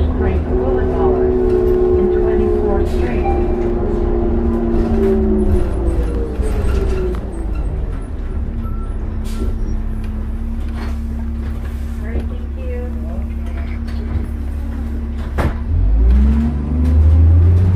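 A window frame rattles as the bus moves.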